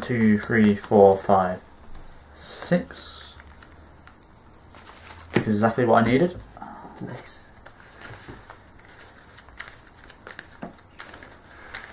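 Playing cards tap softly onto a table mat.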